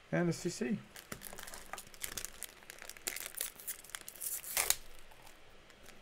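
Foil card wrappers crinkle and tear as a pack is opened.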